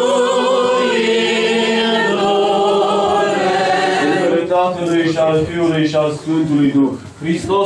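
Men chant together in an echoing hall.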